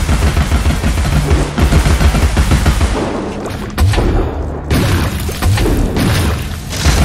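A magical blast bursts with a crackling whoosh.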